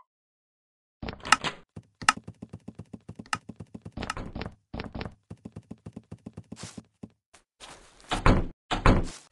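Footsteps thud on a wooden floor in quick succession.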